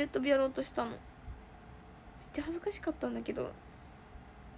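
A young woman speaks softly and casually, close to a phone microphone.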